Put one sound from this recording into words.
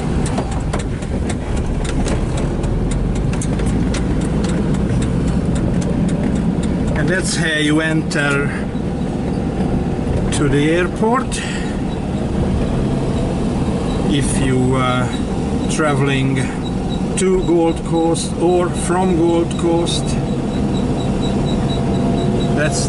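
A car engine hums steadily with tyres rumbling on the road.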